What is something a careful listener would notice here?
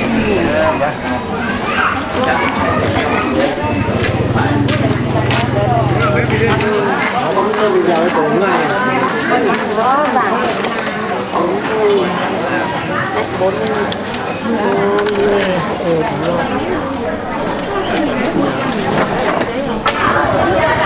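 A young woman and an older woman talk calmly nearby.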